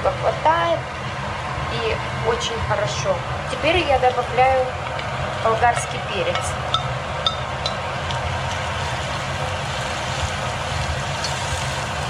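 Food sizzles steadily in a pan.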